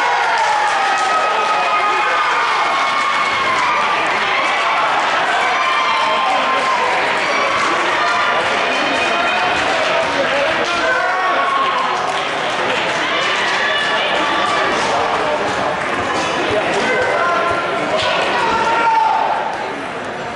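A crowd of people chatter and call out in a large echoing gym.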